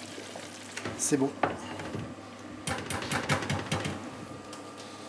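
A whisk scrapes and clatters against a metal pot.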